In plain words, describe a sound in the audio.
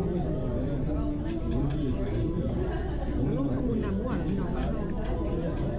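A young woman talks casually close to the microphone.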